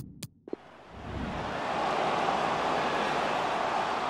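A stadium crowd roars in the distance.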